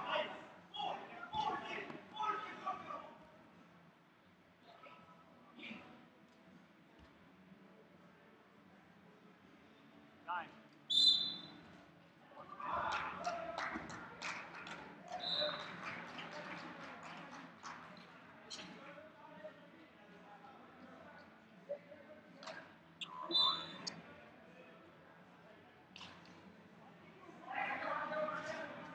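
People in the crowd talk and call out in an echoing hall.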